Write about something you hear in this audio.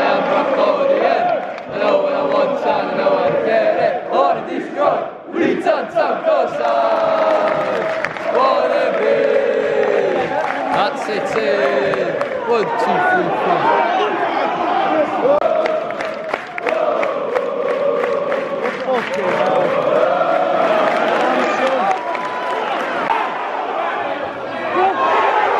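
A large crowd sings and chants loudly all around in an open stadium.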